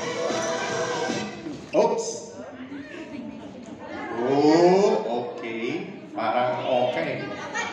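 A young woman sings into a microphone, heard through a loudspeaker in a large echoing hall.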